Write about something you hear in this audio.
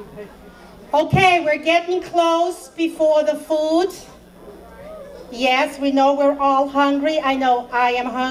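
A middle-aged woman speaks calmly into a microphone over a loudspeaker.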